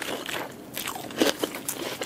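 Crisp lettuce leaves crackle as they are handled.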